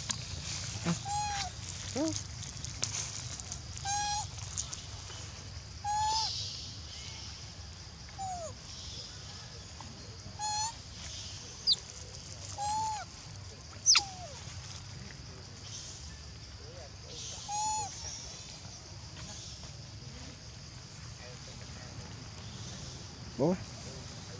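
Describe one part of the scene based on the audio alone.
A young monkey gives short, high squeaking calls close by.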